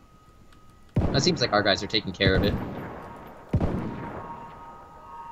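A rifle fires loud shots that echo outdoors.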